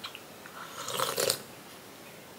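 An elderly woman sips a hot drink.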